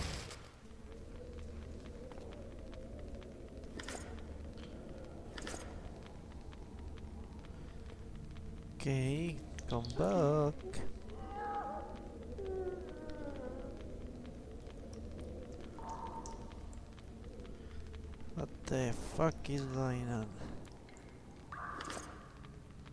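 Footsteps tread on a stone floor in an echoing passage.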